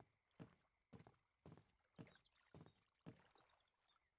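Footsteps thud steadily on hollow wooden boards.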